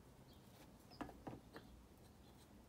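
Hard objects knock together a few times.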